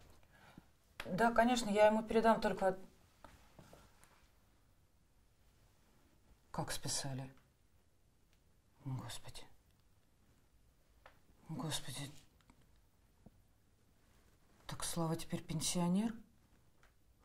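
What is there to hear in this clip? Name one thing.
A woman speaks quietly on a phone, in short anxious phrases.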